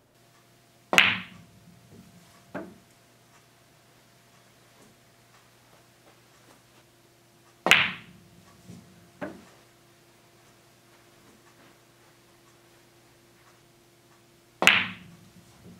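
A cue sharply strikes a billiard ball.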